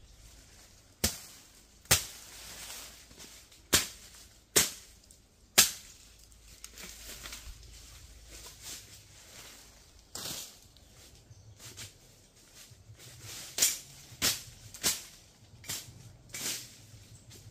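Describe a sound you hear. Branches snap and crack as a man pushes through bushes.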